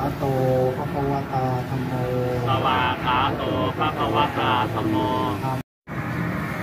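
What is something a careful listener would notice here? A man chants steadily into a microphone, heard through a loudspeaker.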